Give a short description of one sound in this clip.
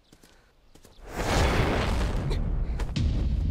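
Horses' hooves pound on the ground as riders move past.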